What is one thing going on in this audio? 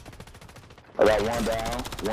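Rapid gunfire bursts close by.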